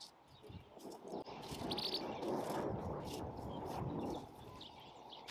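A rake scrapes across dry grass.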